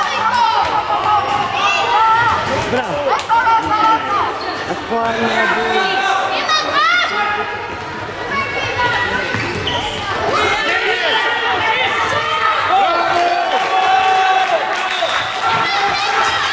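Sneakers squeak sharply on a hall floor, over and over.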